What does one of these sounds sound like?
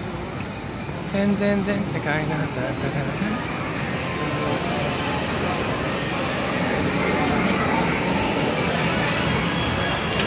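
A crowd of people chatters and walks along a busy street outdoors.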